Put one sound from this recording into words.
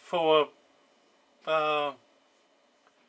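An electronic device gives two short, loud buzzing tones.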